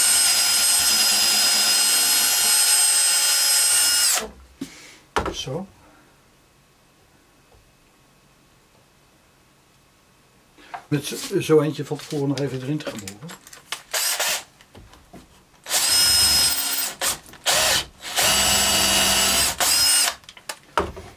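A cordless drill whirs loudly in short bursts.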